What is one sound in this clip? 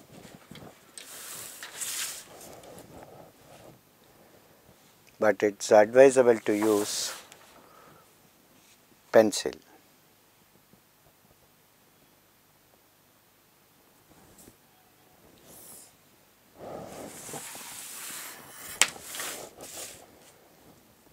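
A plastic set square slides and scrapes over paper.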